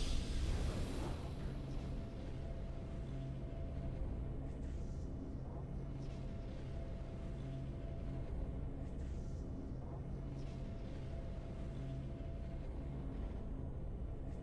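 Soft, triumphant game music plays steadily.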